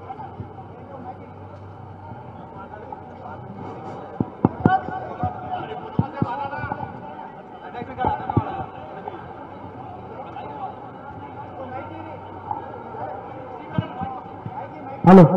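A large outdoor crowd murmurs and cheers.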